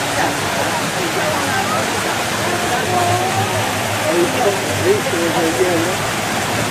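Water splashes and rushes steadily in a fountain outdoors.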